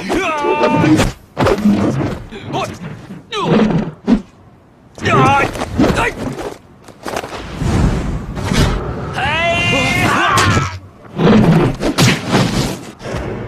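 Weapons clash and whoosh through the air.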